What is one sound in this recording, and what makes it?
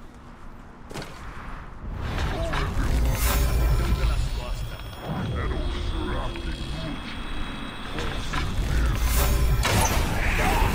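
Blades clash and strike in a fight.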